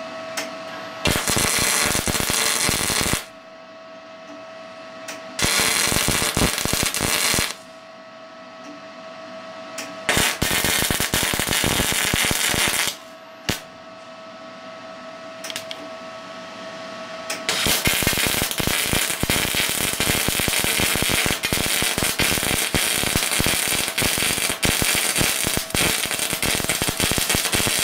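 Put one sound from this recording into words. A welder crackles and sizzles in loud bursts.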